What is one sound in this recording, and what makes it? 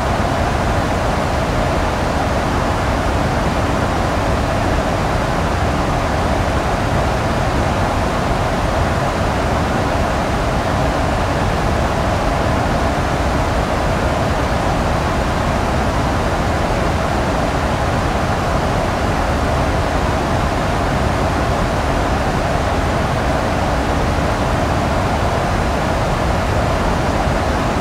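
Jet engines hum steadily with a constant rushing of air.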